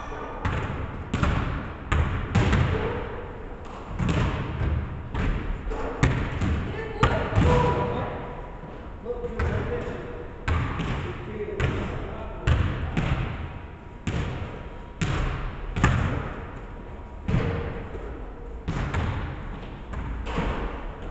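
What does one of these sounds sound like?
Basketballs bounce on a wooden floor, echoing through a large hall.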